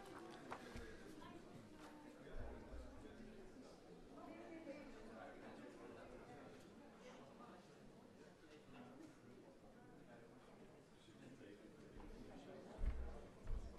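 A crowd murmurs quietly in a room.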